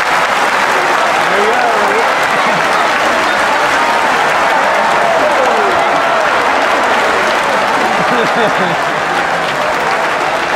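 Many voices in a crowd shout out calls that rise and fall.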